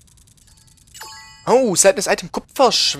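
A bright sparkling chime rings out.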